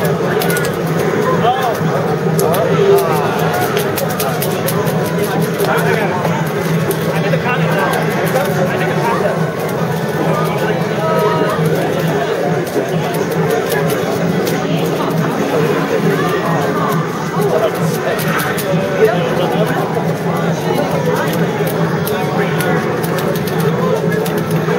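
Upbeat arcade game music plays through a television speaker.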